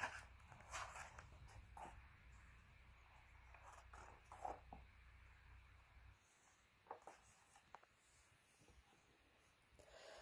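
Book pages rustle as they are turned by hand.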